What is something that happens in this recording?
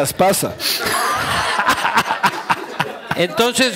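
A man laughs into a microphone.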